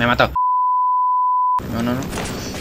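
A steady high beep tone sounds.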